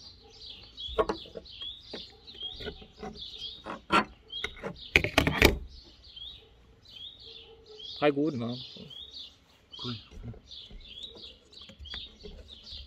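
Metal parts of a hand grinder clink and knock as they are taken apart.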